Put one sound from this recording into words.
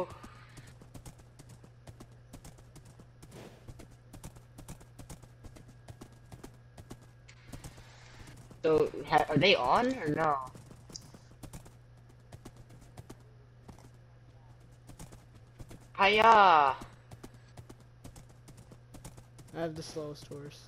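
Hooves clop steadily as a horse trots along.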